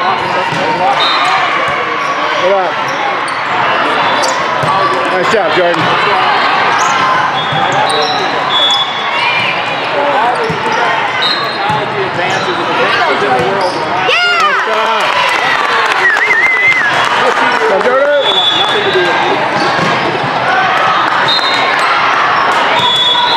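A large crowd of girls and spectators chatters and shouts in an echoing hall.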